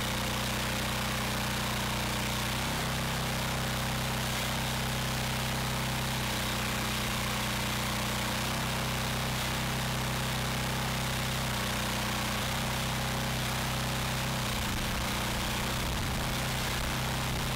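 A petrol engine runs steadily close by.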